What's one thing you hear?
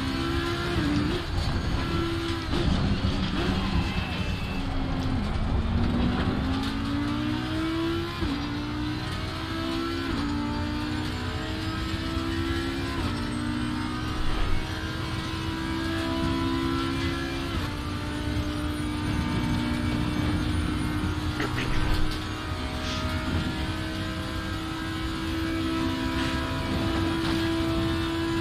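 A racing car engine roars at high revs, climbing in pitch and dropping back with each gear change.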